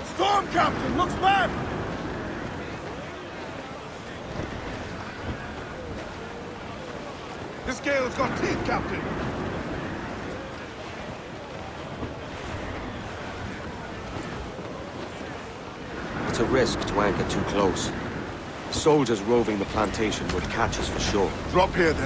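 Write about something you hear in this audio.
Wind rushes steadily over rolling sea waves.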